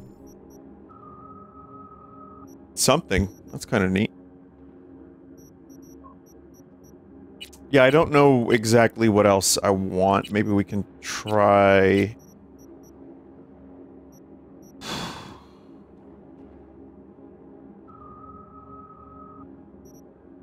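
Short electronic menu beeps sound now and then.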